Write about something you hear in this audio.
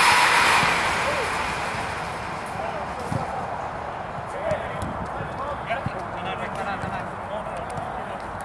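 Men call out to each other across a field.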